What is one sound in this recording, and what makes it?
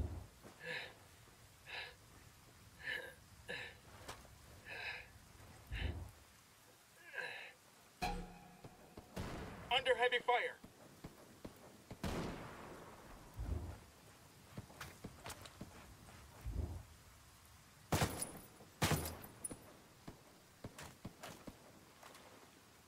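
Footsteps thud softly on the ground.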